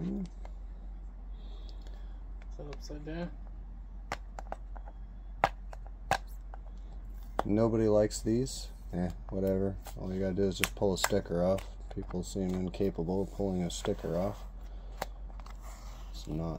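A hard plastic case clicks and rattles as it is handled.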